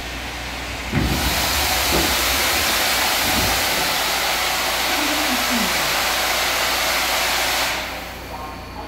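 A loud rushing roar fills the car as the train runs through a tunnel.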